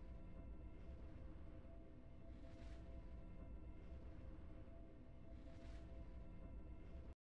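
Triumphant game music plays with steady drums.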